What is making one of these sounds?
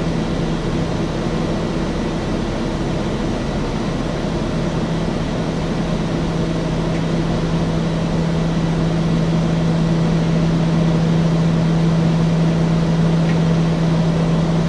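Wind rushes past the aircraft in a steady roar.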